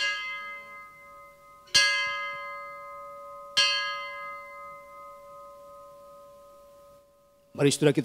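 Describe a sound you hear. A large bell is struck three times and rings on, slowly fading.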